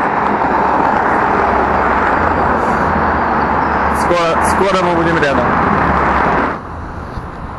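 A car drives past on a street.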